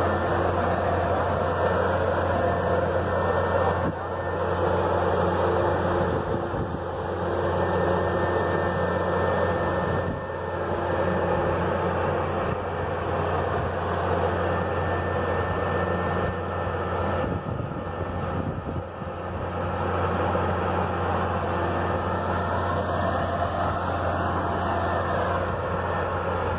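A large sprayer's diesel engine rumbles steadily close by.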